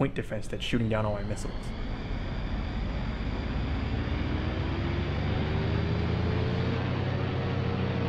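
A jet engine whines and rises in pitch as it spools up.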